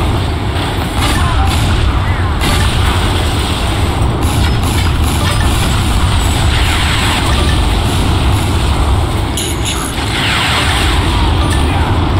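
A tank cannon fires with heavy blasts.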